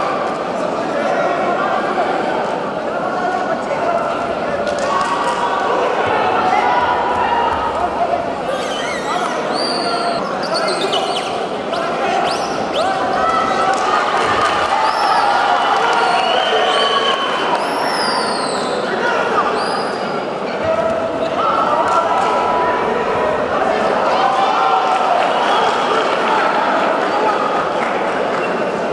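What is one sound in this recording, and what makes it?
A large crowd chatters and cheers in an echoing hall.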